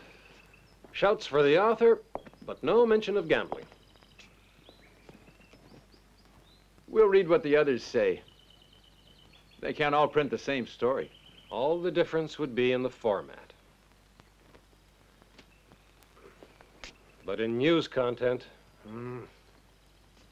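A man speaks calmly nearby, in short bursts.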